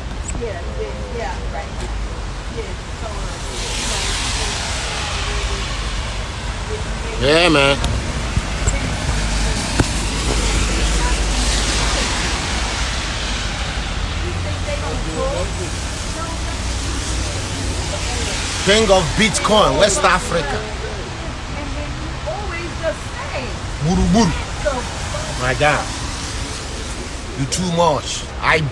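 Wind rumbles outdoors on a street.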